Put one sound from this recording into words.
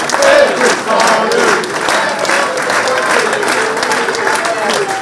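Several people clap their hands in applause.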